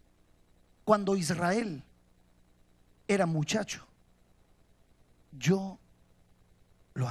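A man speaks with feeling into a microphone, in short phrases with pauses.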